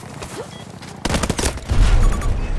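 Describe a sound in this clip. Gunfire crackles in a rapid burst.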